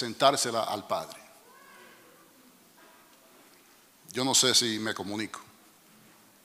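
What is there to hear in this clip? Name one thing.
A middle-aged man preaches forcefully through a microphone in a reverberant hall, with pauses between bursts.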